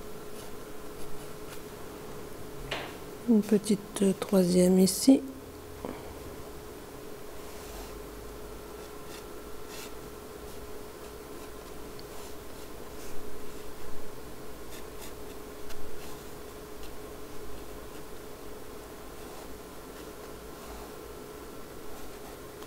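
A brush softly strokes across paper.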